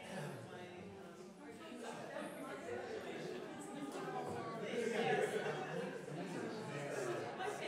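A crowd of adults chatters and murmurs in a room.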